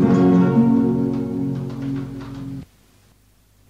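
Guitars strum in a lively rhythm, then stop abruptly.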